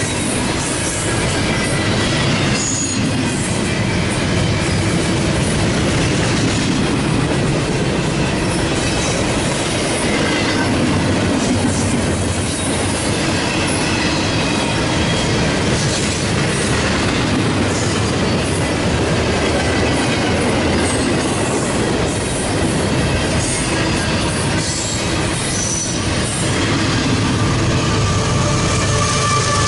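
Metal wheels squeal on the rails.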